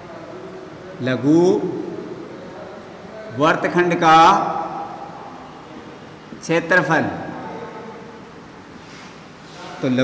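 A young man speaks calmly in short phrases, in a slightly echoing room.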